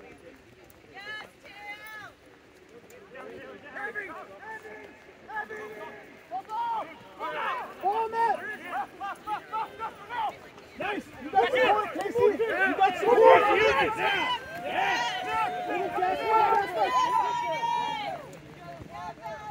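Spectators shout and cheer loudly outdoors.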